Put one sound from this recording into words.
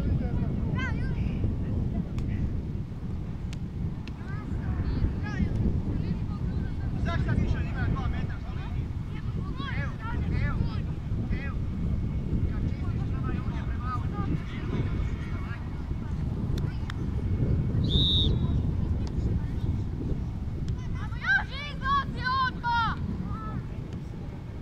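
Wind blusters against the microphone outdoors.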